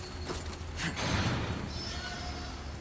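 A metal gate rattles as it is pushed.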